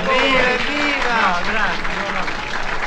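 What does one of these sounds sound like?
A man sings loudly close by.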